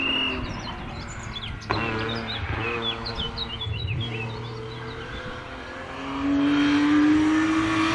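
A BMW E36 320i rally car's inline-six engine revs hard through the gears.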